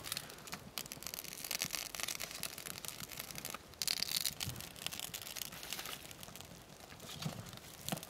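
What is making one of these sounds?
A small wood fire crackles.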